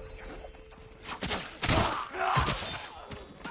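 A sword slashes and strikes.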